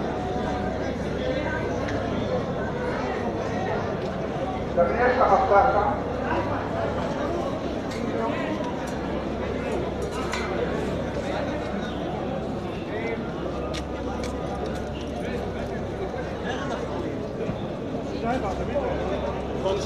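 A crowd of men murmurs and shouts outdoors in a street.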